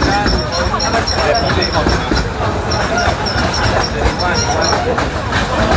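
An open train rumbles and rattles along its track.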